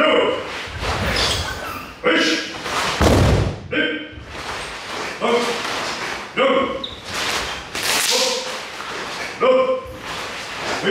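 A group of men shout together in short, sharp bursts in a room with some echo.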